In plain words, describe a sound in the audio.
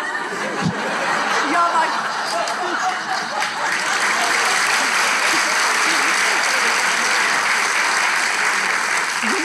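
A man laughs heartily into a microphone.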